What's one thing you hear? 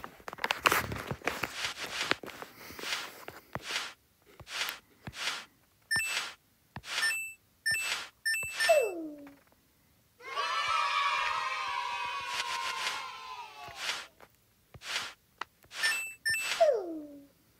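Short electronic chimes ring out in quick succession.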